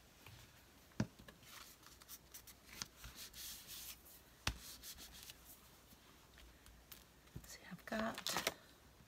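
Paper rustles and taps softly on a hard surface.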